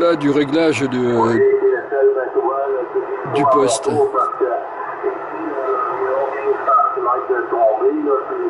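A voice speaks over a CB radio loudspeaker.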